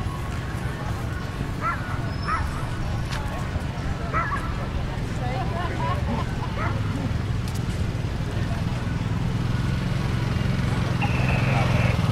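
A quad bike engine rumbles close by.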